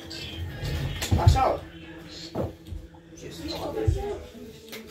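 Knocks and thumps sound as a boy moves about.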